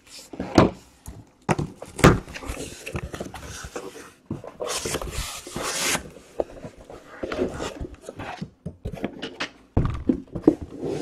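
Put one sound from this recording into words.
Hands tap and thump on a cardboard box.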